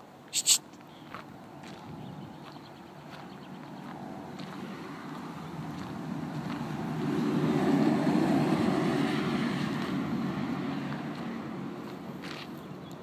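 Footsteps crunch on gravel close by.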